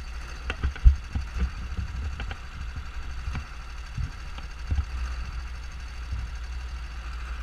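A small kart engine buzzes steadily close by.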